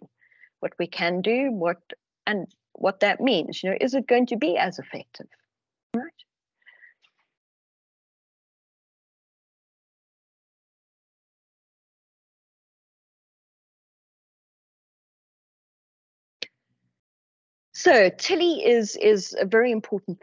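A woman talks calmly over an online call, with pauses.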